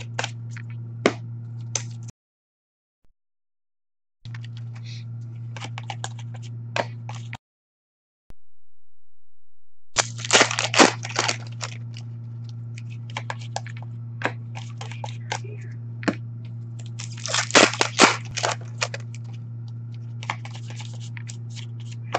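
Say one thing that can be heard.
Plastic card sleeves rustle and click as hands sort through cards.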